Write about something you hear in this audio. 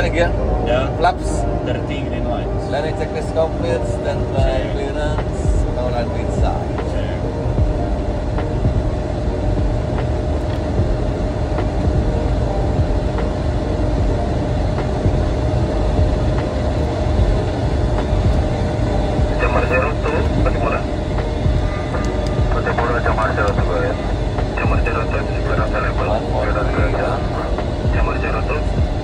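A steady low roar of aircraft engines and rushing air fills the cockpit.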